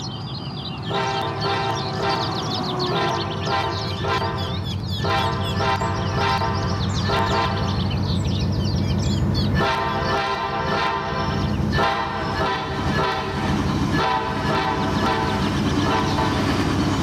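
A train horn blares in repeated long blasts, growing louder as the train approaches.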